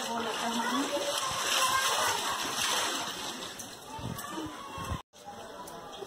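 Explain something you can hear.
Water splashes as clothes are scrubbed in a tub.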